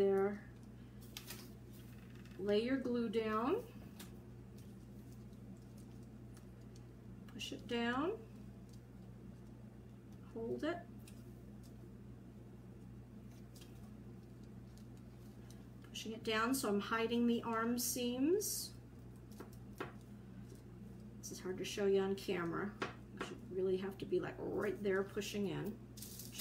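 A middle-aged woman talks calmly and close by, in short bursts.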